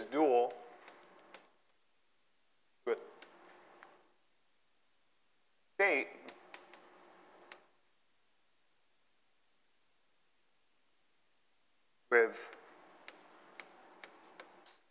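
A man speaks in short bursts, calmly lecturing, in a reverberant room.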